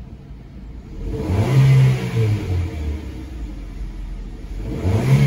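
A car engine revs up sharply, then settles, and revs again.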